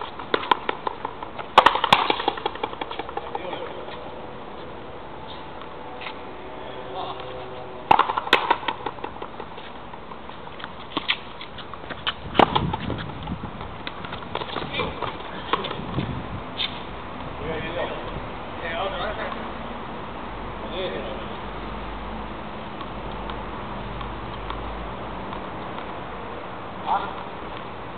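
A ball smacks against a wall and bounces on a hard court, echoing outdoors.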